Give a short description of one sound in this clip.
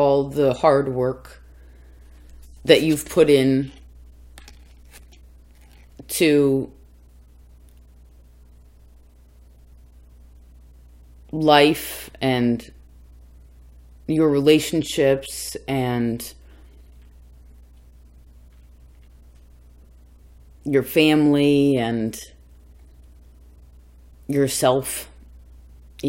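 A young woman speaks calmly close by, in short phrases with pauses.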